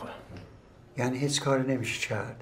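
A middle-aged man asks a question calmly nearby.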